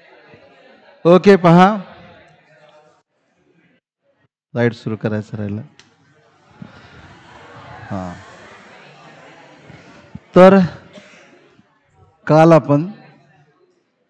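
A man speaks in short bursts through a headset microphone, pausing between phrases.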